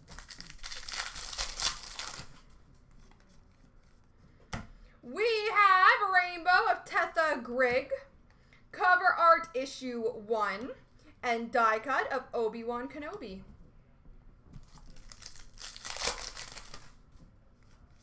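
A foil trading card pack crinkles as it is torn open.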